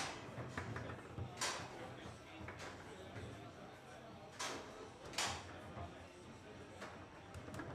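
Foosball rods and ball clack and bang against a table.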